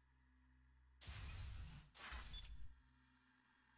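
A heavy pod hisses and whirs shut.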